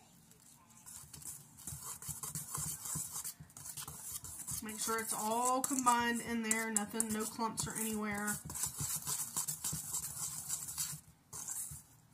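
A woman stirs something in a bowl with a scraping sound.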